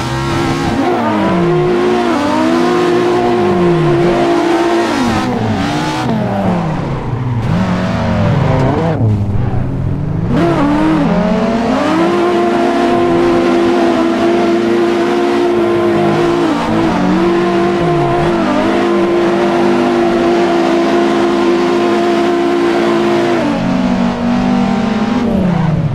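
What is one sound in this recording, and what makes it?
A car engine revs hard, rising and falling as gears shift.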